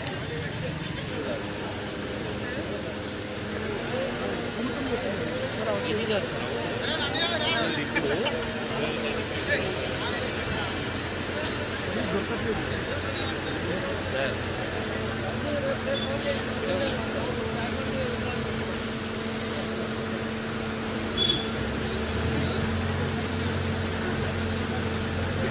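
A crane engine hums steadily.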